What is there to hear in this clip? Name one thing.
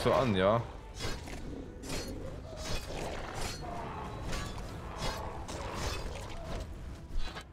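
Blades swing and strike in a fight.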